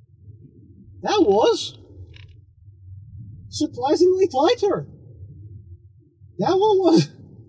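A man talks calmly and close by, in short phrases.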